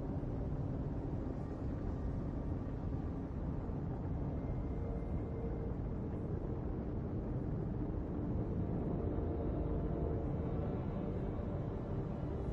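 Spaceship engines roar steadily.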